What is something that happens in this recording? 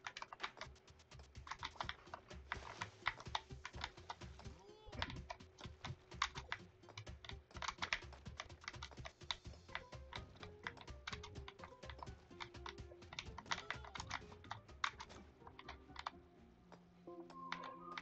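Short game sound effects tap and click rapidly.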